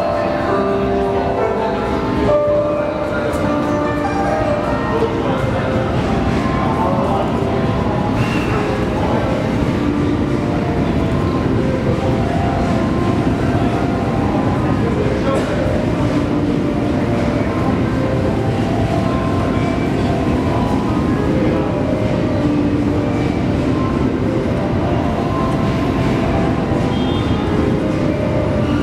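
A train rumbles slowly into a station.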